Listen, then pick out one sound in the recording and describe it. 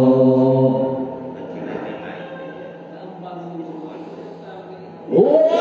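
A man chants a recitation loudly through a microphone in a reverberant hall.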